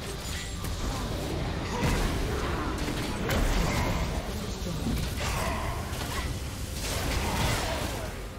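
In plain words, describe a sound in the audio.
Magic spell effects burst and crackle in quick succession.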